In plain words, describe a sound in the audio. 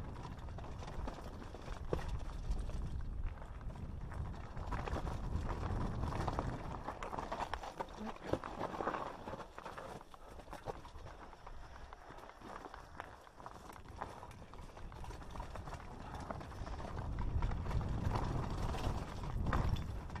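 Mountain bike tyres rattle and crunch over loose rock going downhill.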